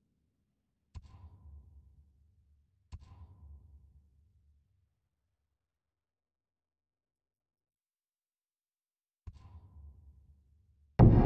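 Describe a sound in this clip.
Soft menu clicks sound a few times.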